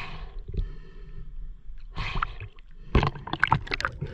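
Water sloshes and splashes at the surface close by.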